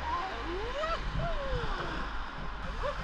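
Small waves wash onto a beach.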